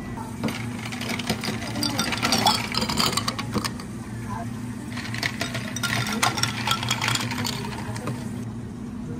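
Ice cubes clatter into a glass.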